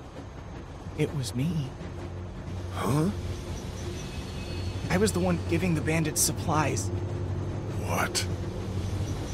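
A man speaks in a tense, worried voice.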